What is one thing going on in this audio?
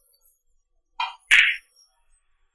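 A billiard cue strikes a ball with a sharp click.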